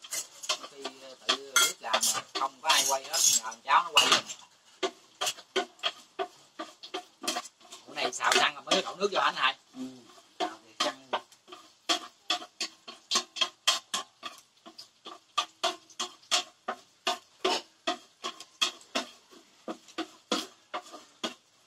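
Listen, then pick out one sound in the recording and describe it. A wooden stick knocks and scrapes against a metal pot in a steady rhythm.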